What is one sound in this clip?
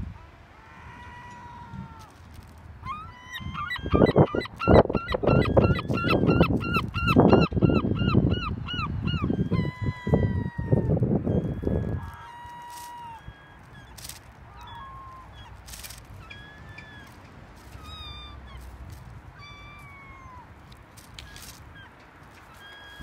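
Gulls call loudly and repeatedly nearby.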